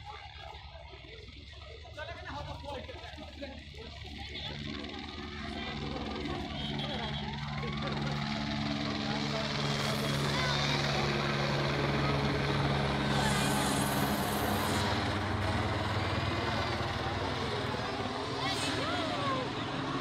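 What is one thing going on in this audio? A helicopter flies low overhead, its rotor thudding and growing louder as it comes closer.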